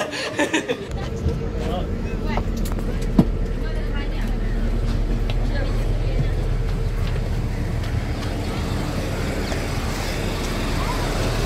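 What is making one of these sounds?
Footsteps walk on a hard floor and then down steps onto pavement.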